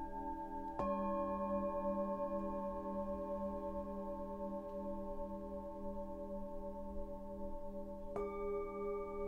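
A bowl is struck with a soft mallet, sending out a bright new ringing tone.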